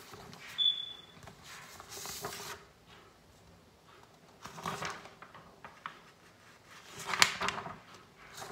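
Sheets of paper rustle and flap close by.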